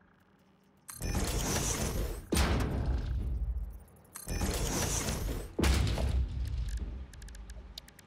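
A machine part locks into place with a loud whooshing rumble.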